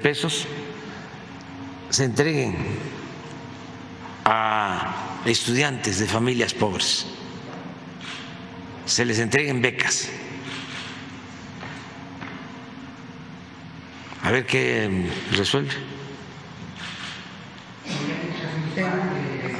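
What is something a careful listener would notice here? An elderly man speaks slowly through a microphone, with long pauses.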